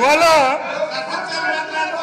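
A man chuckles quietly.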